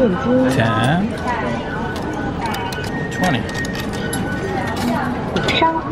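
Coins clink as they drop into a machine slot one by one.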